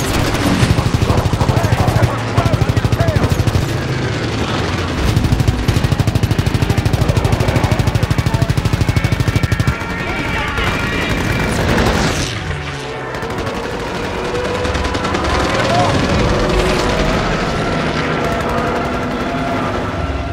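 A plane engine drones steadily.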